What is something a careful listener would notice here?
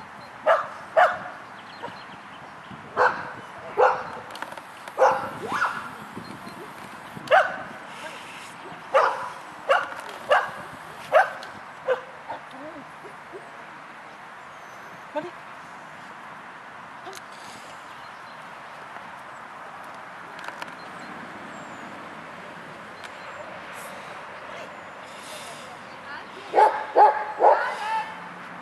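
A middle-aged woman calls out short, firm commands nearby.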